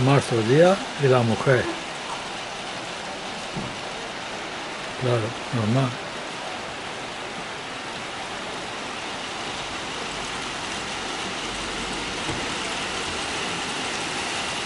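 Heavy rain pours steadily onto rooftops outdoors.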